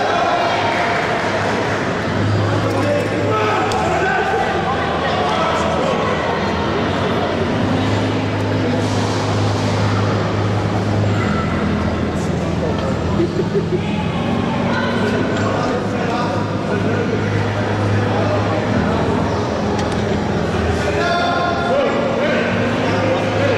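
Men shout encouragement loudly in a large echoing hall.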